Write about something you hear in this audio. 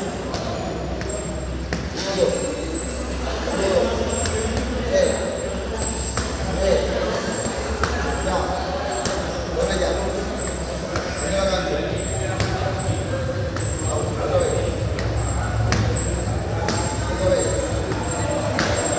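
Boxing gloves thump against padded mitts in quick punches.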